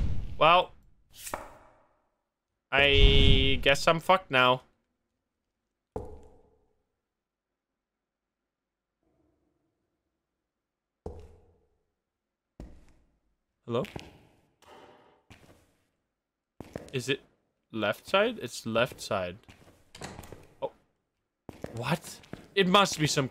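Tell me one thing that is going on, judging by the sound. A young man talks into a close microphone in short bursts, with pauses.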